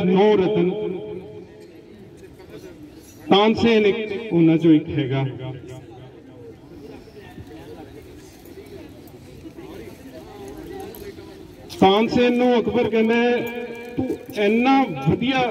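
A man sings through a microphone and loudspeakers, in bursts with pauses.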